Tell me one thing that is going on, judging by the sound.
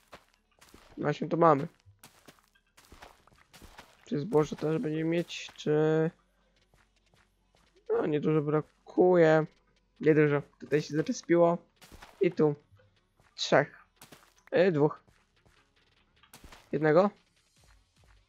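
A boy talks with animation, close to a microphone.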